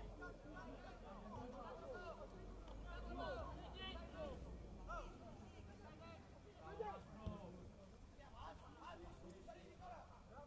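Football players call out to each other in the distance outdoors.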